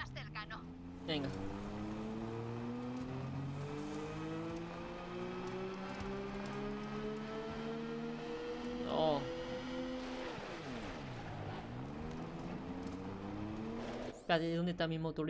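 A vehicle engine hums and revs, rising and falling in pitch.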